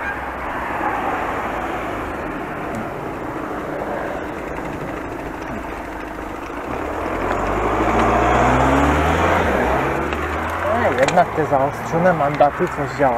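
Tyres roll along pavement.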